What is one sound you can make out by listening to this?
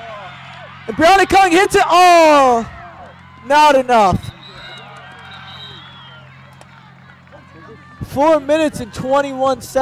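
Young women shout and cheer loudly outdoors.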